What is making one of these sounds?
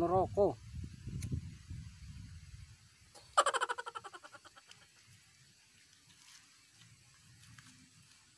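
A man puffs on a cigarette up close.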